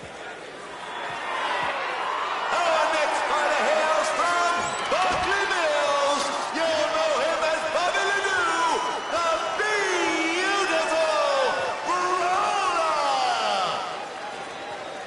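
A man announces loudly through a microphone, drawing out his words.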